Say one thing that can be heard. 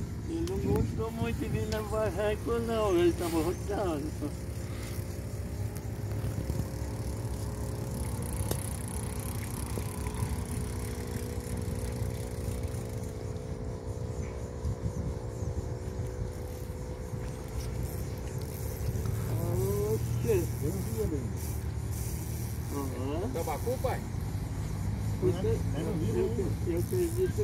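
Men talk casually nearby outdoors.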